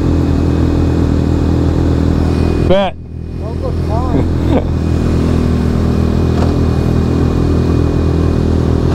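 A motorcycle engine idles with a steady low rumble close by.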